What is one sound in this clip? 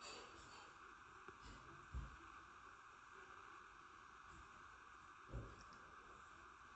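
A television gives off a steady hiss of tape static.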